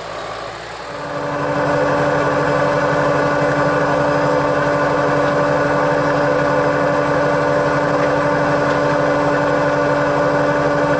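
A tractor engine runs loudly up close with a steady hum.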